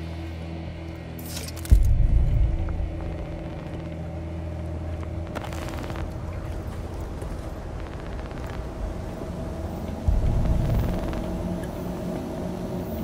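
Wind blows steadily outdoors in a snowstorm.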